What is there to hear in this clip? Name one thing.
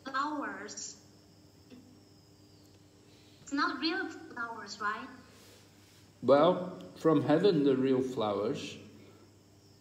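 An elderly man speaks close to a phone microphone in short bursts.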